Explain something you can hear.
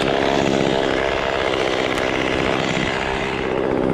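A chainsaw cuts through dry palm fronds.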